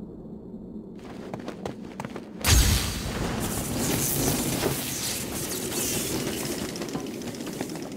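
Footsteps fall on a hard stone floor.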